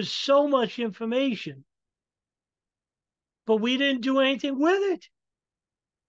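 A man speaks in short bursts with pauses.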